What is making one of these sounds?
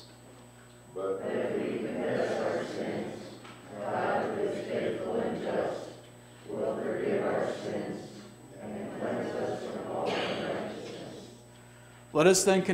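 A group of men and women respond together in a low murmur.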